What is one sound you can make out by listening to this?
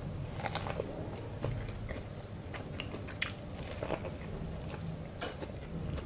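A young woman bites into crunchy corn close to a microphone.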